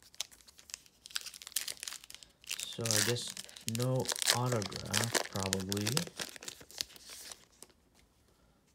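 A foil wrapper crinkles as hands tear open a pack.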